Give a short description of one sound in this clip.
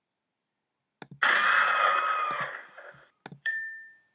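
A short game-over jingle plays.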